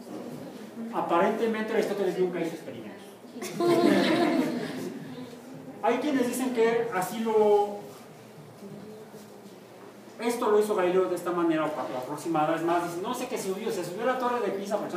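A man speaks with animation in an echoing room.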